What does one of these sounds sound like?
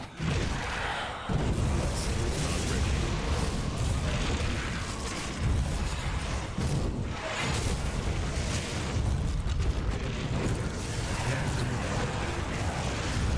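Magic spells crackle and explode in rapid bursts.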